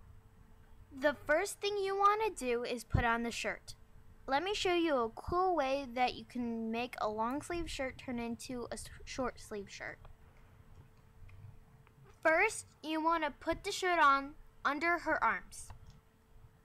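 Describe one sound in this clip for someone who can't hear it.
A young girl talks calmly and close by, in short bursts.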